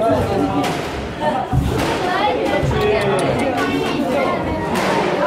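A squash racket strikes a ball in an echoing court.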